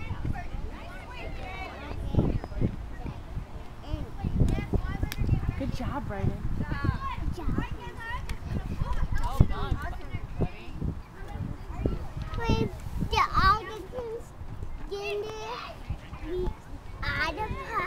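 Children shout and call out in the distance outdoors.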